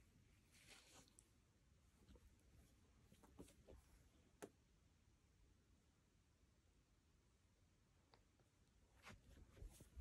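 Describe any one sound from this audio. A comb scrapes softly through a dog's fur.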